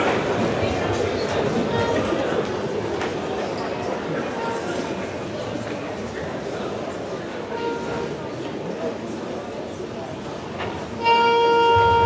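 An audience murmurs and stirs.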